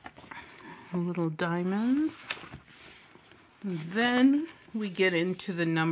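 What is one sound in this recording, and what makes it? Paper pages rustle as a book page is turned.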